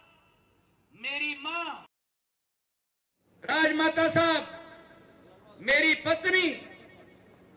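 A man speaks loudly and forcefully through a loudspeaker outdoors, in short bursts.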